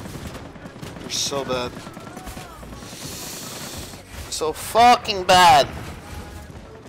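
A young man talks into a microphone, at times loudly and with animation.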